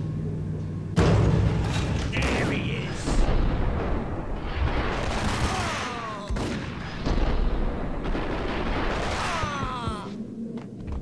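Gunshots fire rapidly and echo in a large hall.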